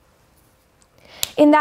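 A young woman speaks clearly close to a microphone.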